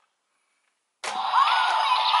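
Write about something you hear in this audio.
A toy sword plays electronic sound effects through a small speaker.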